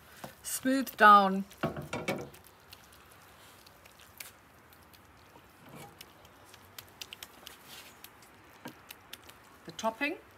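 A wooden spoon scrapes and pats rice in a dish.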